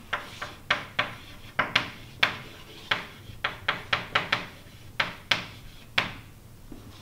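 Chalk taps and scrapes on a board in quick strokes.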